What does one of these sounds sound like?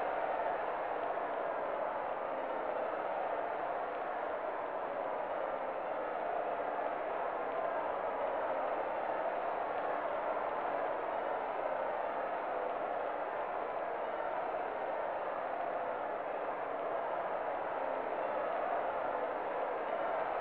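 A crowd roars steadily in a large stadium.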